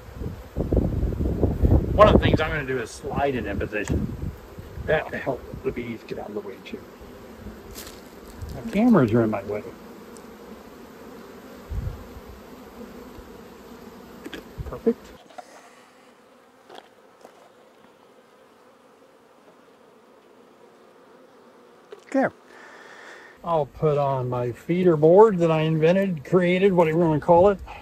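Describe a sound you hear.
Bees buzz softly around an open hive.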